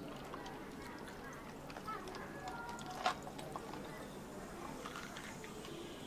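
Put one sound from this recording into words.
Liquid pours and splashes into a bottle of ice.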